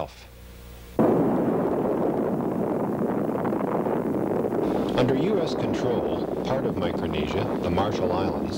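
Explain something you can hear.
A huge explosion roars and rumbles on and on.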